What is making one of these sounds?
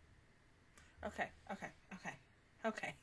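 A young woman speaks animatedly, close into a microphone.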